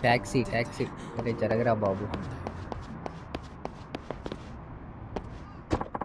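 Quick footsteps run on a hard pavement.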